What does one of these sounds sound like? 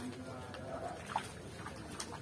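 A fish splashes in water close by.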